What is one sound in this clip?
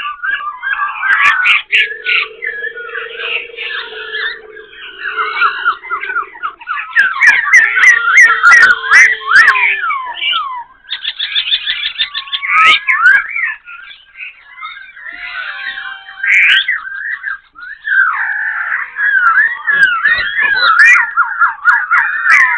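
A silver-eared laughingthrush sings a loud, varied song full of rapid whistles and mimicked phrases.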